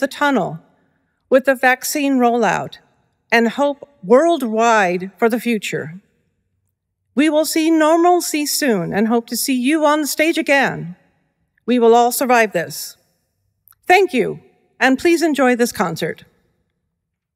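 A middle-aged woman sings solo into a microphone, in phrases with pauses between them.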